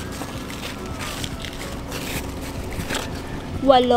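Leaves rustle as a hand brushes through them.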